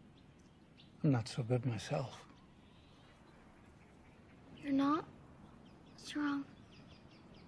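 A girl speaks softly, close by.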